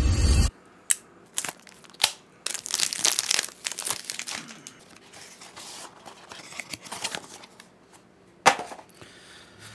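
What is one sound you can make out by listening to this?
A man tears open a cardboard package with crinkling and rustling.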